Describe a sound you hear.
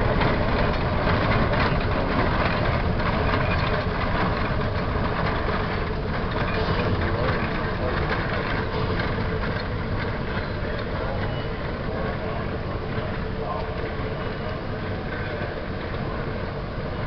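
A steam locomotive chugs steadily as it pulls a train along the track.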